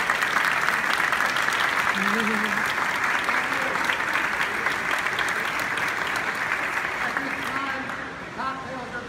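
An audience applauds in a large echoing hall.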